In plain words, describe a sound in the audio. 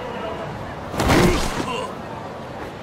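A heavy body thuds onto the ground.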